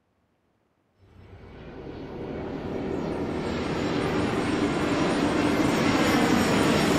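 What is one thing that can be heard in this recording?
Propeller plane engines drone and grow louder as they approach.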